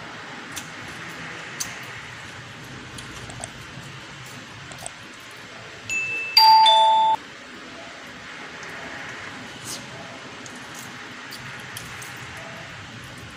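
A woman chews food with soft, wet smacking sounds close to the microphone.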